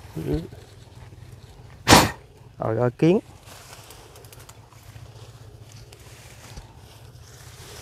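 Footsteps rustle through tall grass and weeds.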